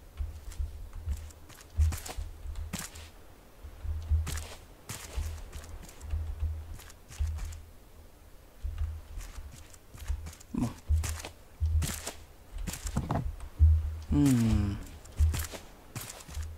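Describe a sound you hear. Footsteps thud softly on a wooden roof.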